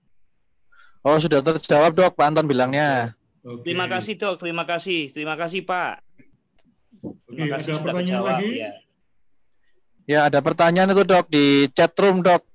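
A man speaks steadily over an online call, in short bursts with pauses.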